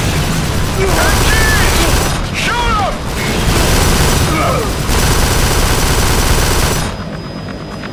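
Rapid gunfire roars loudly.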